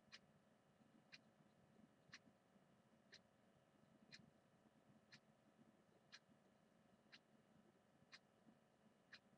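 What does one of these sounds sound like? A clock ticks once every second with short, sharp clicks.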